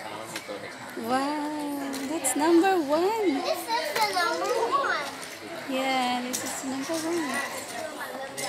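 A young child talks in a high voice close by.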